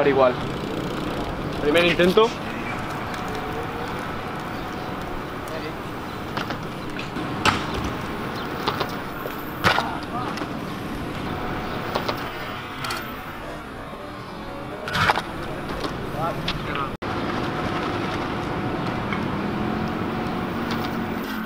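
Scooter wheels roll and rattle on concrete.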